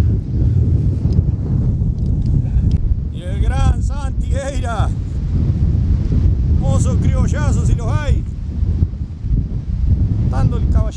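Wind gusts and rumbles steadily outdoors.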